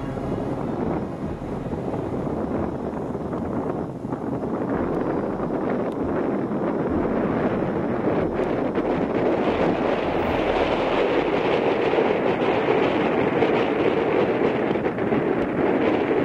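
A small propeller plane's engine roars as the plane takes off and climbs away.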